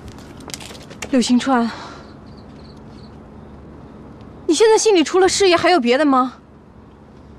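A young woman speaks with alarm and close by.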